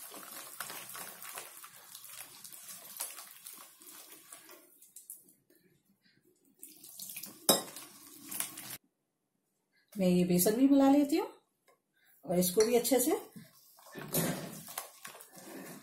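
A hand squelches through wet batter in a steel bowl.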